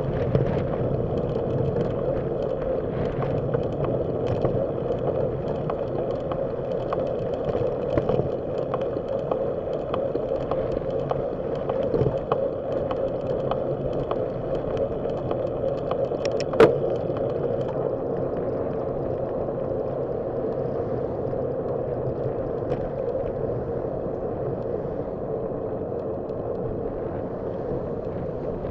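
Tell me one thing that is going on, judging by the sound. Tyres hum steadily on rough asphalt.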